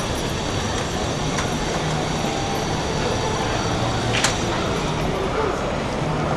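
A busy outdoor street hums with distant crowd chatter.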